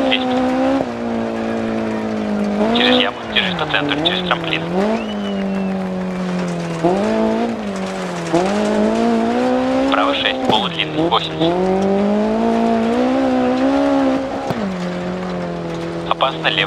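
A car engine revs hard, rising and falling as the gears change.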